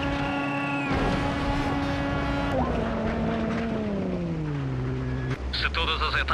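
A rally car engine roars at high revs, then winds down as the car slows.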